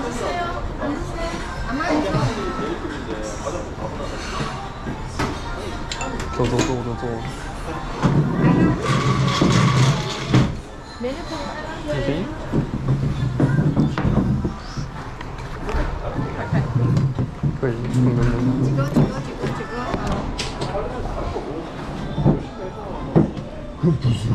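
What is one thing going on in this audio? Several women chat in the background of a busy room.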